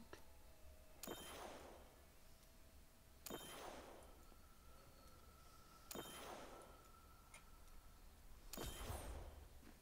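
Magical game effects whoosh and shimmer in repeated bursts.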